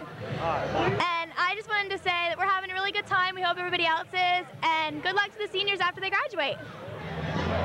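A young woman talks cheerfully into a microphone, close up.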